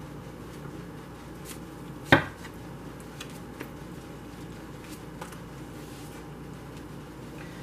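Playing cards tap and slide softly onto a table.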